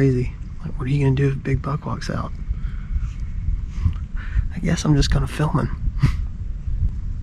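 A man speaks quietly and casually close by.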